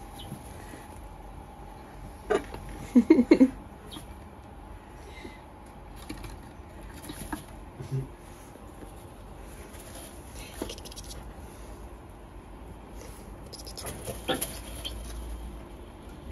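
Small rats scurry and scratch on a wooden shelf and bedding.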